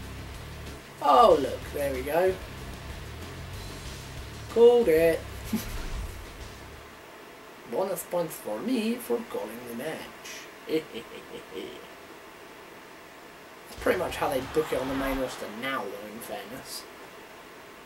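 A young man talks expressively into a close microphone.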